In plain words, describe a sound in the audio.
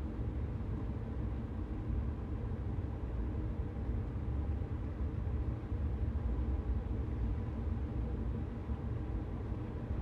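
An electric train rumbles steadily along the rails.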